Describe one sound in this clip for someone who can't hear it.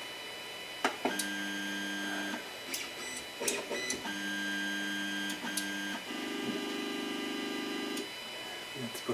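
A printer's motors whir in short, steady buzzing tones.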